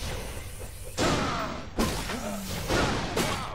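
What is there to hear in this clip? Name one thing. A fiery blade whooshes around in a wide spinning swing.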